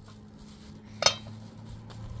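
A metal pot clanks sharply.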